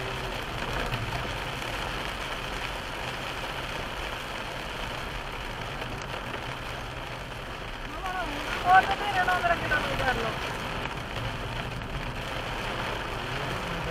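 Wind and rain rush steadily against a moving car.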